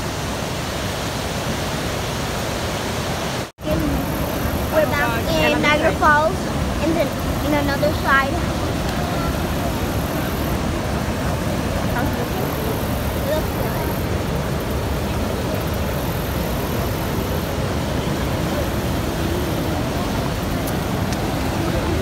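Rushing river rapids roar steadily.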